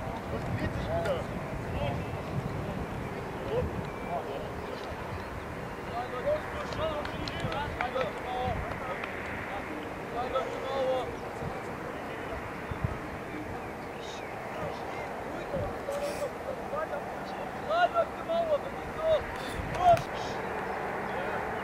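Young players shout and call to each other across an open outdoor pitch.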